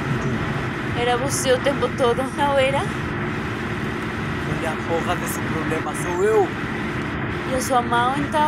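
A young woman speaks urgently and close by.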